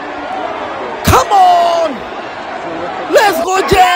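People in a crowd shout loudly close by.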